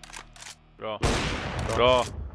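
A sniper rifle shot cracks loudly.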